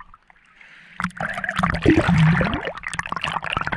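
Water splashes and sloshes at the surface.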